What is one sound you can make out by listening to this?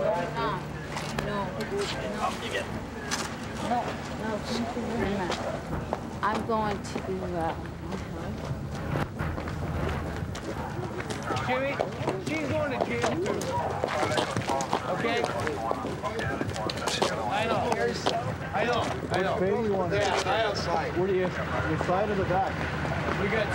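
Several people talk and shout at once.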